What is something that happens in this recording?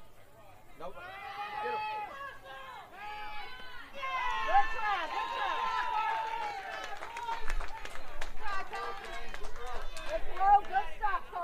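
Young boys shout and cheer loudly outdoors.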